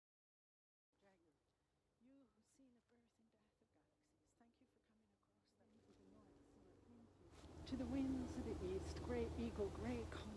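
An older woman speaks calmly, close by.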